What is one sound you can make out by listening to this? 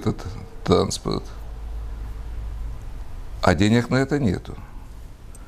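A middle-aged man speaks calmly and haltingly into a microphone, close by.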